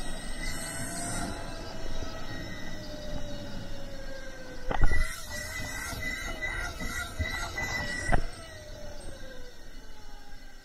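An electric mountain bike's motor whines as it rides along.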